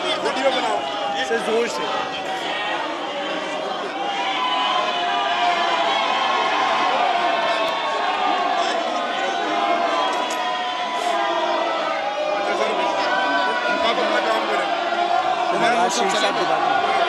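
A crowd of men talks and shouts at once in a large echoing hall.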